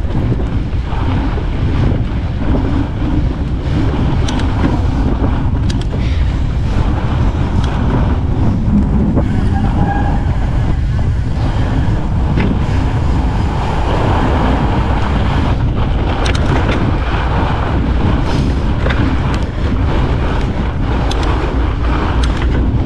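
Bicycle tyres crunch and hiss over packed snow.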